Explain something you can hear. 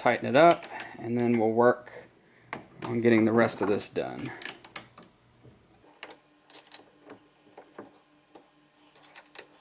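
Small metal parts click and tap as a fitting is adjusted by hand.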